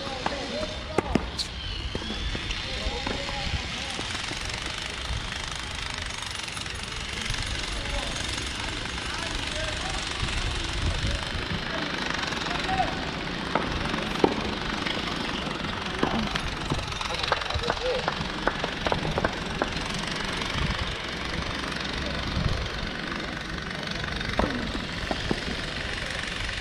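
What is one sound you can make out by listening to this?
Tennis balls are struck with rackets, with sharp pops outdoors.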